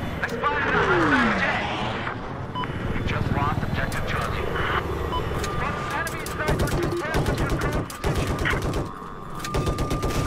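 A helicopter's rotor thumps steadily, heard from inside the cockpit.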